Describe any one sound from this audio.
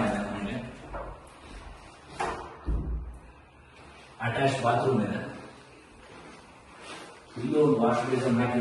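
A man speaks clearly and casually in a room with some echo.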